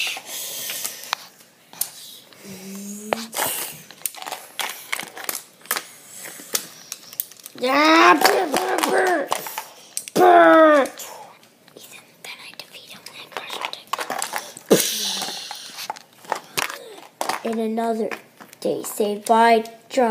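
Plastic toy blocks click and clatter on a hard countertop.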